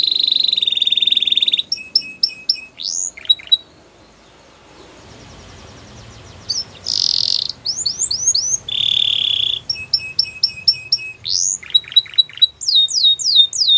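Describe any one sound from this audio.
A canary sings close by with fast trills, chirps and whistles.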